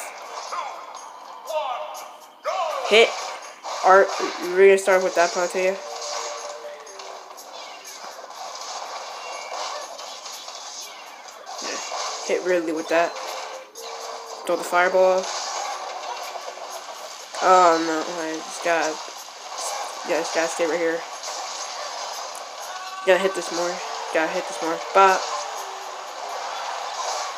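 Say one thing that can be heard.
Video game music plays from a small speaker.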